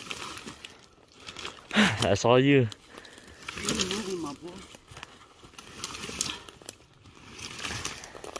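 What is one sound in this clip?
Dry twigs and branches crackle and scrape as a heavy body is dragged over them.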